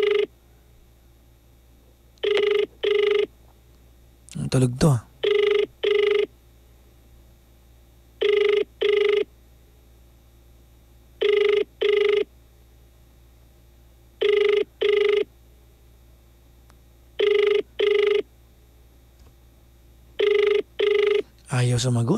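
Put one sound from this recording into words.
A phone line rings in repeated double tones over a loudspeaker.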